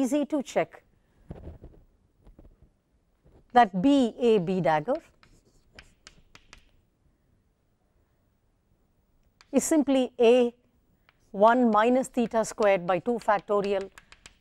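A woman speaks calmly in short phrases, close to a microphone.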